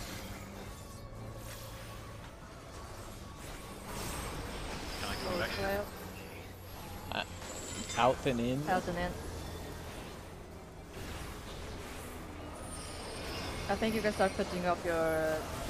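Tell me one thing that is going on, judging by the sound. Magic spells whoosh and chime.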